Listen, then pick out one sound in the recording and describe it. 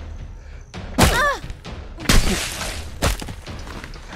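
A weapon strikes a body with heavy, wet thuds.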